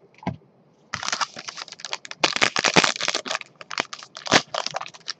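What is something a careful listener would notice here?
Plastic wrap crinkles loudly as gloved hands tear it open.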